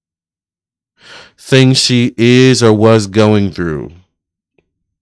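A man speaks close to a microphone in a calm, expressive voice.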